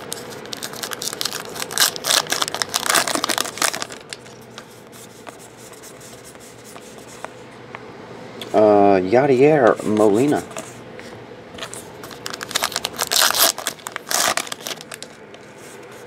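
Foil card packs crinkle and tear open.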